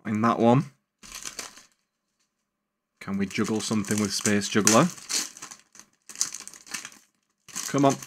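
Foil card packs crinkle as they are torn open.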